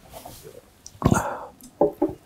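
A glass is set down on a table with a knock.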